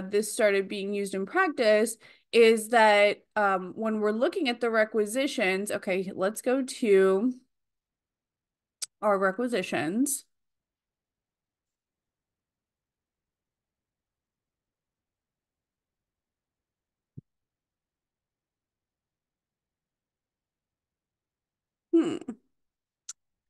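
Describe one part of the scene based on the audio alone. A young woman speaks calmly into a close microphone, as if on an online call.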